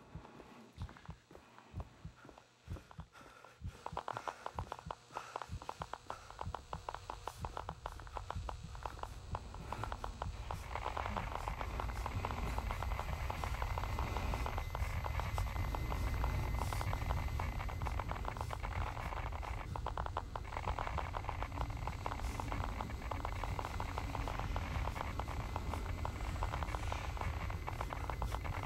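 A man talks quietly into a headset microphone.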